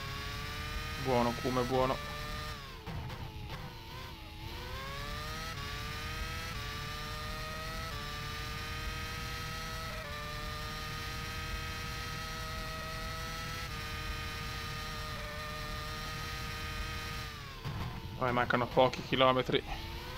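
A racing car engine crackles and pops as the driver downshifts under braking.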